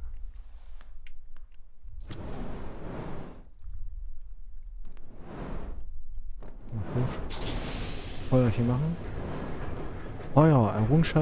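Water laps and sloshes gently.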